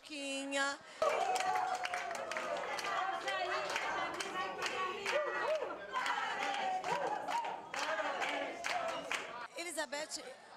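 A group of people sings together.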